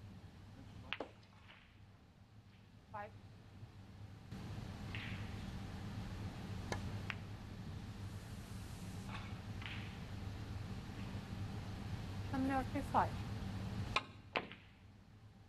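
Snooker balls knock together and clack.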